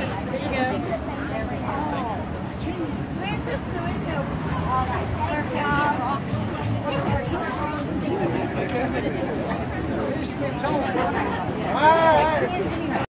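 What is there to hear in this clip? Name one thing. An elderly man speaks to a small crowd outdoors.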